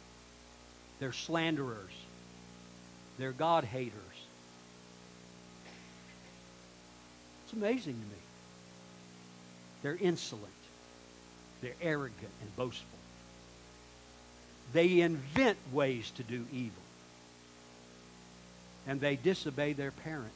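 A man speaks slowly and with pauses through a microphone.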